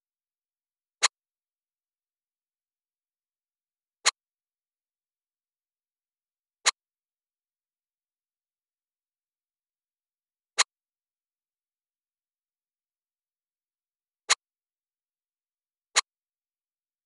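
Short, sharp interface clicks sound every few seconds.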